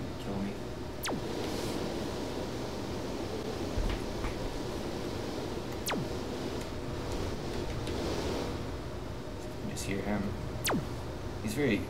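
A laser zaps in a game with a quick falling whine.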